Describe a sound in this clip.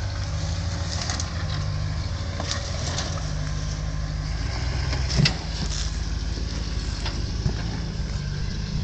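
An off-road truck engine rumbles and revs as it climbs over rocks.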